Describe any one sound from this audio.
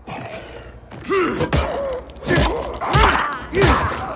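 A heavy club thuds against a body.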